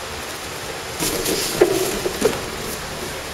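Bodies thump and rustle against a plastic sheet during a grapple.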